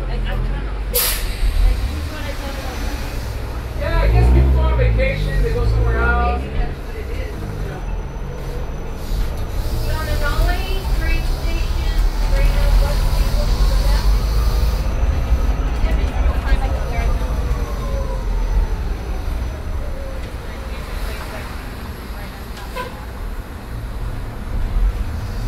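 A bus engine rumbles steadily while driving.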